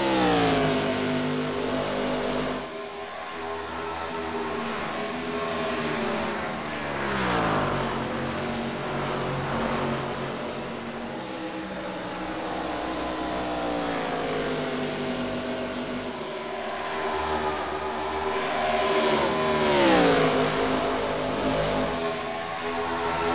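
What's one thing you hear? Race car engines roar at high revs, rising and falling in pitch as they pass by.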